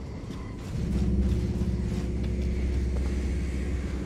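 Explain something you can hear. Heavy armored footsteps clank on stone.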